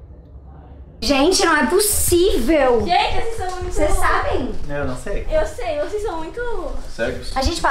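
A young woman talks loudly and excitedly close by.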